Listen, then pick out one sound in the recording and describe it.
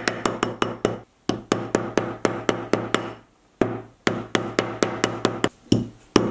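A mallet taps rapidly on a metal ring on a steel rod, each blow ringing briefly.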